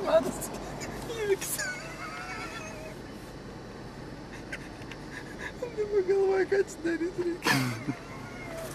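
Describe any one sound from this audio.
A car's engine and tyres rumble steadily from inside the car.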